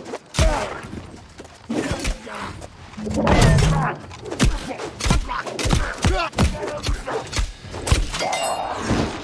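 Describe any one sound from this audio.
Sword blows strike and clang in quick succession.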